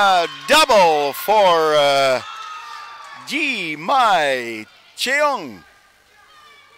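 Players shout and call out loudly in an echoing sports hall.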